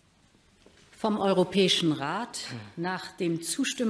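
A middle-aged woman speaks calmly through a microphone in a large hall.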